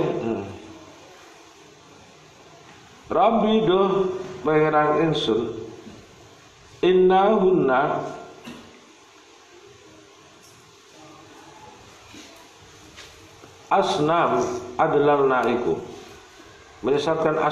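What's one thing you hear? A man chants in long melodic phrases, heard from across a room.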